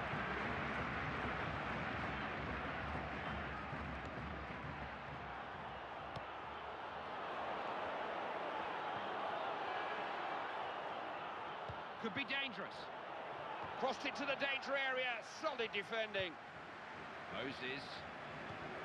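A large crowd roars steadily, as in a big stadium.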